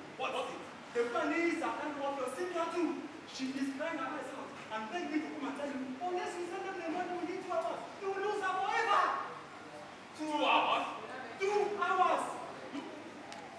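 A second young man answers loudly and with animation.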